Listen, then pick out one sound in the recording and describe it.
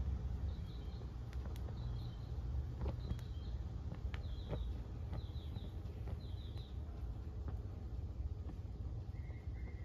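Small flames crackle and pop.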